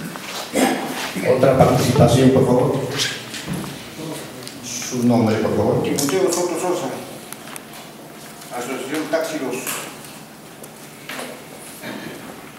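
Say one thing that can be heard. An elderly man speaks forcefully into a microphone, heard through loudspeakers in an echoing room.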